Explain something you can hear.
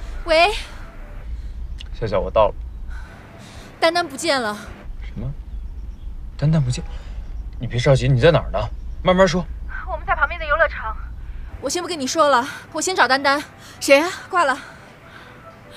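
A young woman speaks anxiously on a phone.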